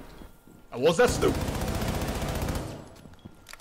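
A rifle fires a rapid automatic burst close by.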